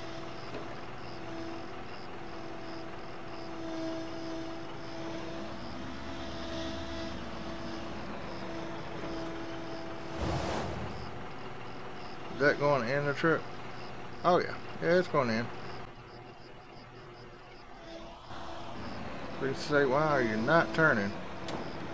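A backhoe loader's diesel engine runs with a steady hum.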